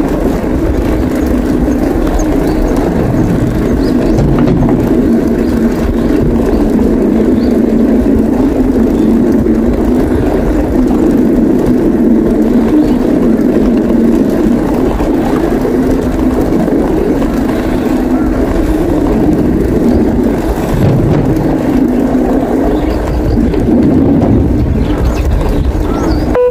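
Bicycle tyres roll over a plank boardwalk.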